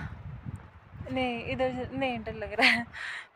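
A young woman speaks cheerfully close to a phone microphone.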